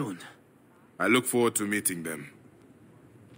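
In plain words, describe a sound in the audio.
A second man answers calmly in a deep voice.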